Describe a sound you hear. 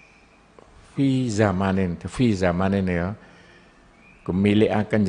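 An elderly man chants a recitation into a microphone with a drawn-out, melodic voice.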